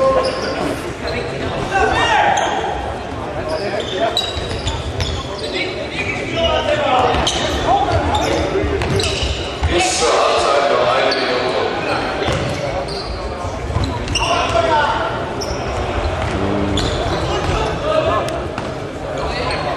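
Sneakers squeak on a hard indoor floor.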